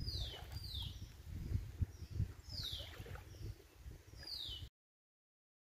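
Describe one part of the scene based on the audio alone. Shallow water laps gently at a shore.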